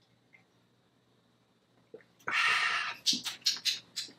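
A young man sips a drink and swallows.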